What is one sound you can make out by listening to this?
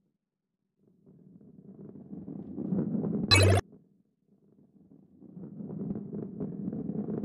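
A ball rolls along a track with a low rumble that grows louder.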